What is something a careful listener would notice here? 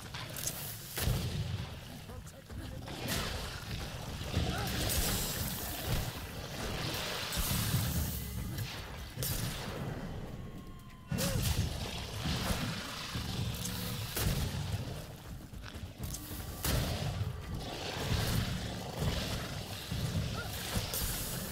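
Weapons strike and clash in a fight with sharp, repeated hits.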